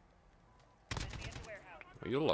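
A rifle fires a short burst of gunshots.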